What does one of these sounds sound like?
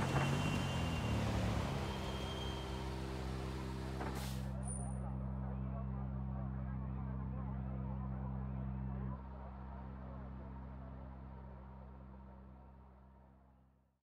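A rally car engine idles with a low, steady rumble that fades away at the end.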